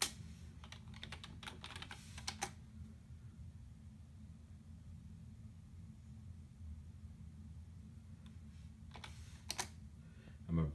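Keyboard keys click in quick bursts.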